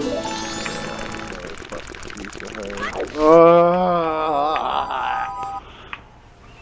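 Cheerful video game music plays.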